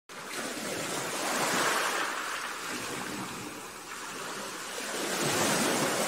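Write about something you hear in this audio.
Water rushes and splashes steadily past a moving boat.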